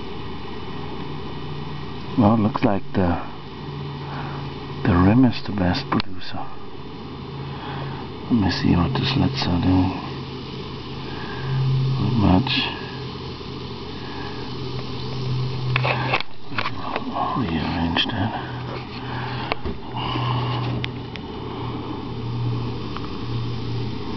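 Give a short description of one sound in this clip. Fine gas bubbles from electrolysis fizz under water.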